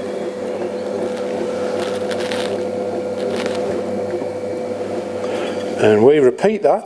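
An electric potter's wheel motor hums as it spins.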